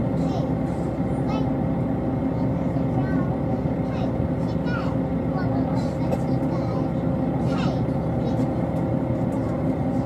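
A train hums and rumbles steadily, heard from inside a carriage.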